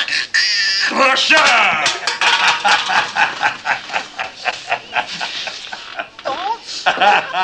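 An elderly man laughs loudly.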